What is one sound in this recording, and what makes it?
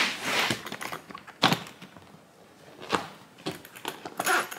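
A hard suitcase thumps and scrapes as it is handled.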